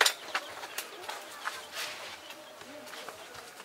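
Sand scrapes and rustles as it is shovelled from a metal wheelbarrow.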